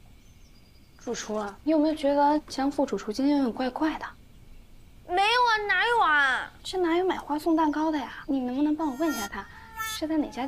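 A young woman asks questions in a puzzled, lively voice.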